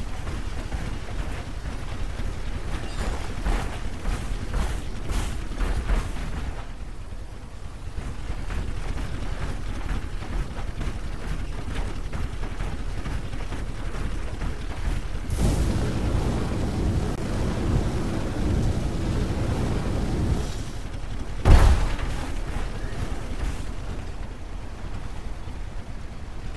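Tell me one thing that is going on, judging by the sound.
Heavy metal footsteps of a walking robot thud and clank.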